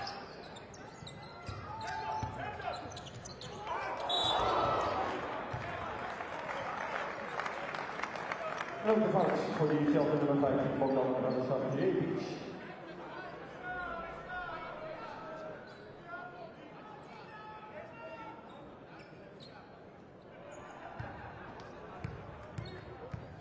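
A large indoor crowd murmurs and cheers, echoing through a big hall.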